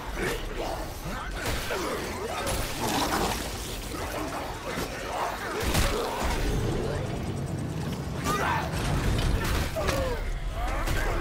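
Heavy blows hit flesh with wet thuds.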